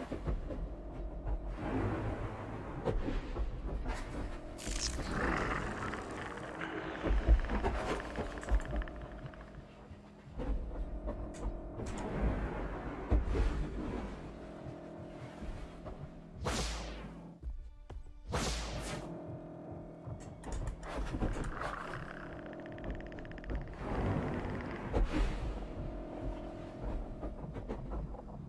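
A large creature stomps with heavy thuds.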